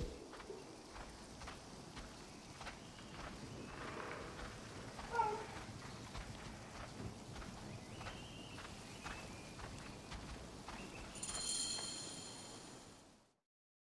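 Footsteps crunch on a dirt path at a running pace.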